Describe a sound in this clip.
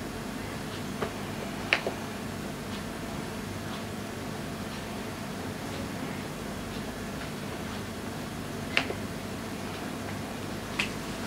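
Fingertips tap on a touchscreen.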